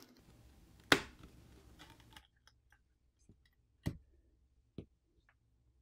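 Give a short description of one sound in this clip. A plastic back cover clicks and snaps as it is pried off.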